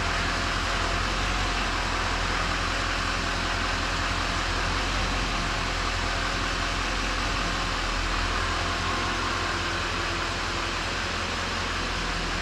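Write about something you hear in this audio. A truck engine idles steadily close by.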